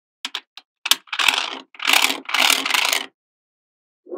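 A plastic sheet scrapes and rustles against magnetic balls.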